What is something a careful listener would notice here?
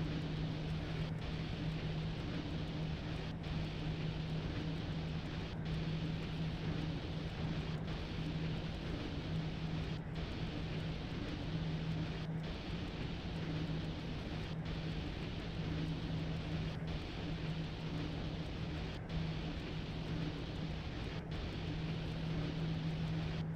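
Train wheels rumble and clatter over the rails.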